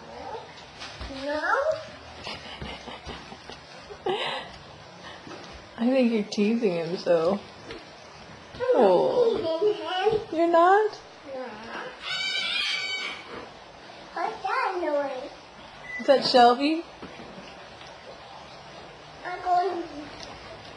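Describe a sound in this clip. A little girl talks and squeals nearby in a high voice.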